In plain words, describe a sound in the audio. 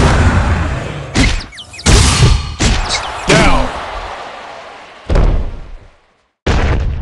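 A deep whoosh rings out and slowly fades.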